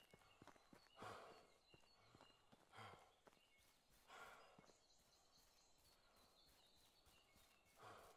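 Footsteps rustle through dense ferns and grass.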